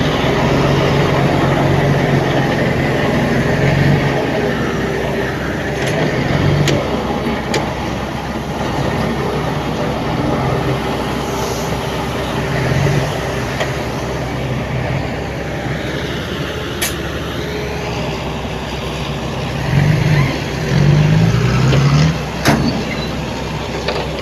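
Heavy diesel engines rumble steadily at a distance.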